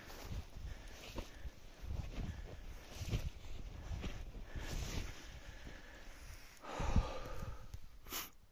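Boots crunch through deep snow with each step.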